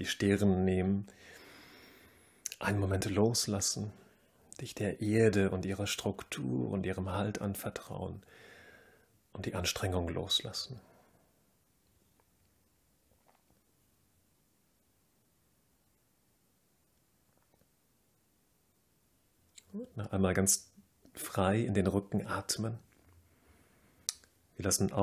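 A man speaks calmly and slowly, with pauses.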